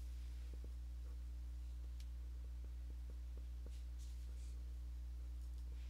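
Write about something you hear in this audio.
A brush dabs and scrapes softly on a palette.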